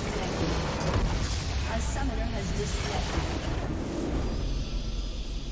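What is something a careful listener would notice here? A huge structure explodes with a deep rumbling crash.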